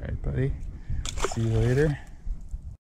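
A fish splashes into water close by.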